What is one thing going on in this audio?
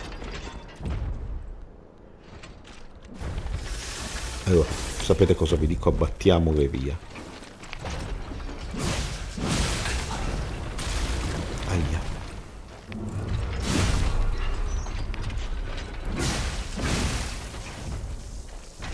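A giant machine stomps heavily with deep thuds.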